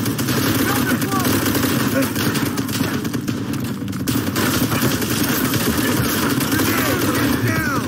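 Gunshots fire rapidly in a small echoing room.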